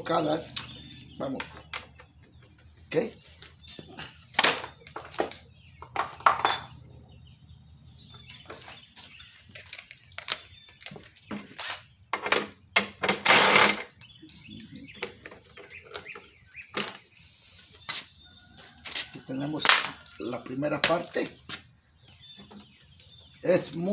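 Plastic parts clatter and knock.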